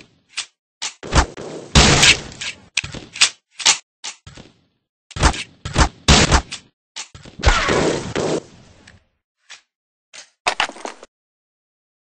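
A paintball rifle fires sharp shots.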